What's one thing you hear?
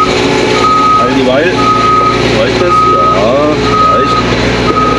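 Hydraulics whine and groan as the excavator swings around.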